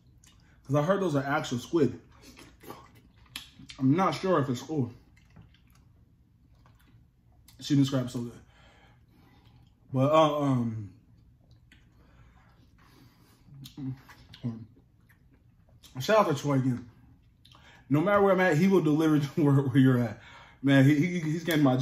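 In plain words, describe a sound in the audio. Food crunches and smacks as a man chews.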